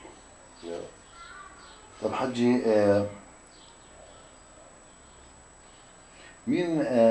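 An elderly man speaks calmly close by, in short bursts with pauses.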